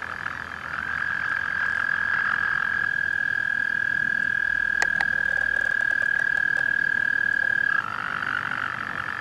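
A toad gives a loud, steady, high-pitched trill close by.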